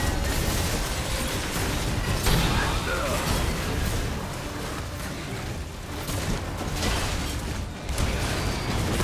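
Magic blasts and clashing weapons crackle and boom in a fast, busy fight.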